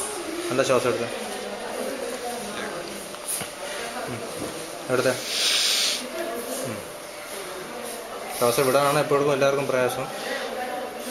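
A woman speaks quietly, very close by.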